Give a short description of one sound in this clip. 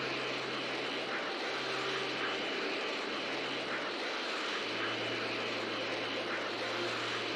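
Wind rushes loudly past at high speed.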